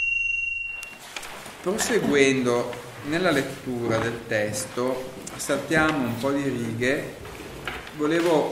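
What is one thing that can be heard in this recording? A man talks to a group.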